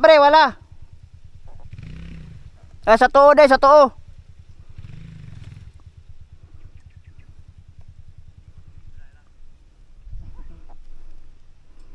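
A dirt bike engine idles with a steady low putter.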